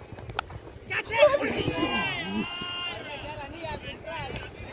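Men shout excitedly outdoors at a distance.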